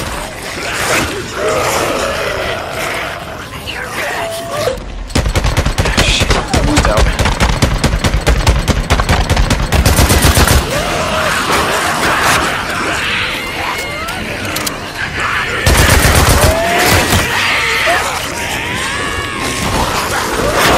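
A crowd of creatures shrieks and snarls.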